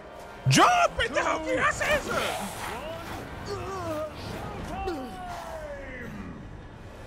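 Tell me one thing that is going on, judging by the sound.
A man shouts with animation.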